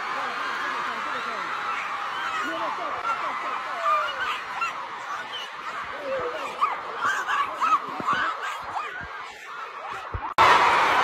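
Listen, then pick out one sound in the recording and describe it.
A large crowd cheers and screams with excitement in a big echoing hall.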